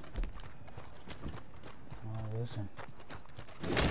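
Boots crunch on gravel.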